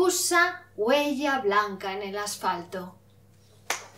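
A woman reads out into a microphone.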